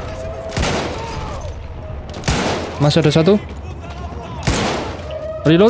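A rifle fires loud single shots that echo off walls.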